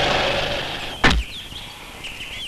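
A car door clunks open.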